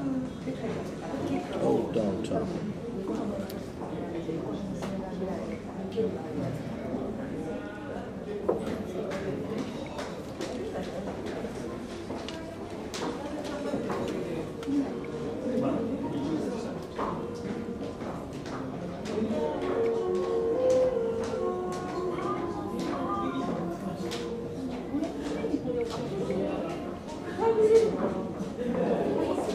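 A finger taps lightly on a phone's touchscreen.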